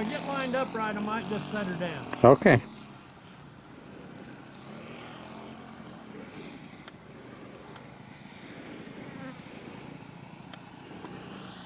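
A small model plane engine buzzes overhead, its pitch rising and falling, then fades to a faint distant drone.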